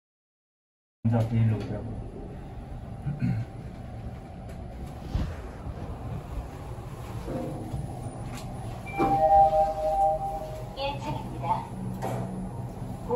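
An elevator hums as it moves.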